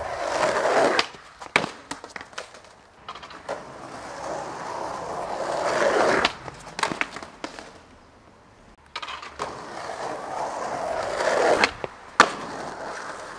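A skateboard snaps and clacks sharply on landing.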